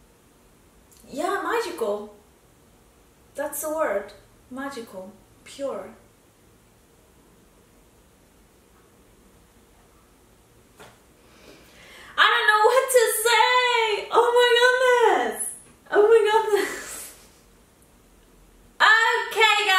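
A young woman speaks calmly and close by, with pauses.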